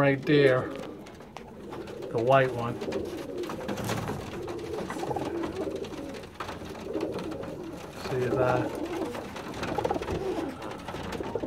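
Pigeons coo in low, throaty bursts close by.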